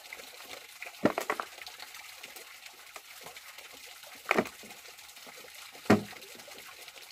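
A plastic bucket knocks and thumps against the ground.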